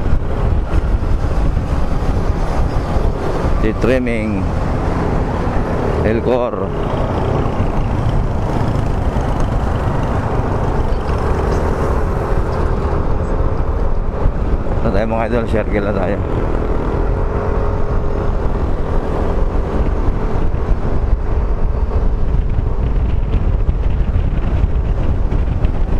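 A motorcycle engine hums steadily as it rides along a road.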